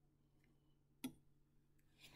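A glass flask clinks briefly against a hard surface.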